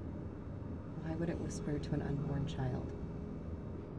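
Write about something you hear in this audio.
A woman speaks quietly inside a car.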